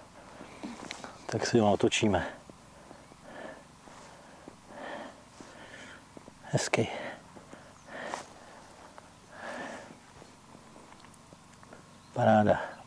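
A middle-aged man speaks calmly close by, in short bursts with pauses.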